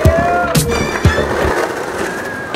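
A skateboard clatters hard onto paving stones.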